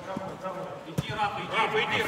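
A football thuds off a boy's foot.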